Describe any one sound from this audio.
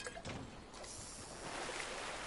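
Water splashes as someone wades and swims.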